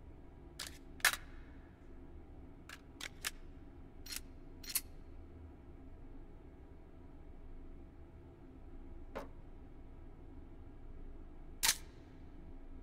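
Metal gun parts click and clack as they are handled.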